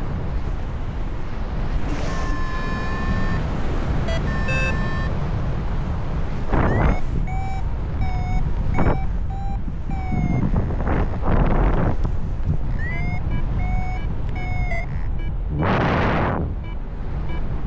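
Wind rushes loudly past in flight.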